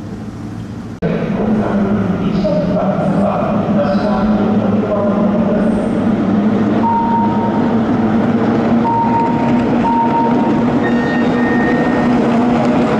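Several racing boat engines drone steadily across open water.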